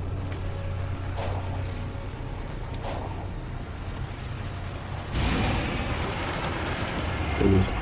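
A rushing, grinding whoosh of fast movement along a rail sounds.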